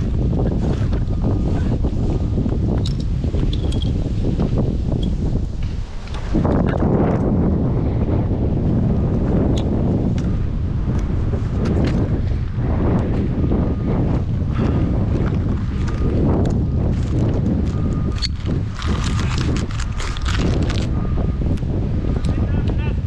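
Wind rushes and buffets loudly, high outdoors.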